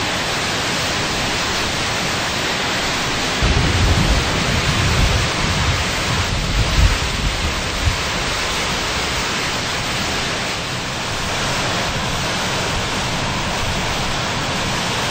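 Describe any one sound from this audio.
Strong wind roars and howls steadily outdoors.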